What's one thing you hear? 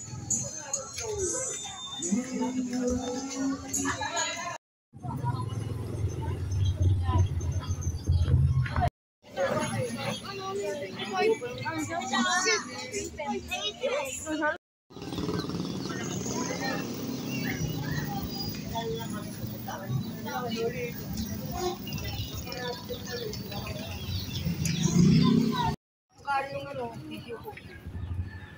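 Children chatter and call out close by.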